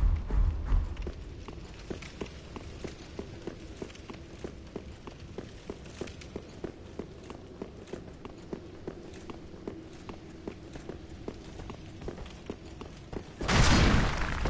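Armoured footsteps clank quickly on stone.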